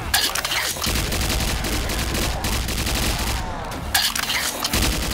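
An energy weapon fires with crackling electric zaps.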